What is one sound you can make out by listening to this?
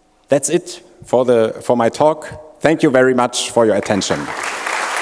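A man speaks calmly through a microphone in a large hall.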